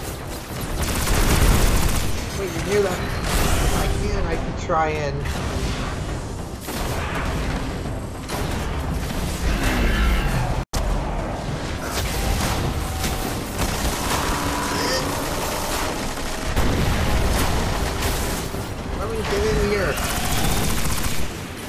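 Video game gunfire and blasts ring out repeatedly.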